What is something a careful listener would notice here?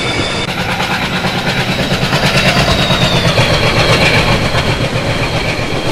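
A diesel locomotive roars loudly as it passes close by.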